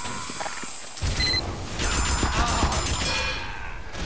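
A video game weapon fires.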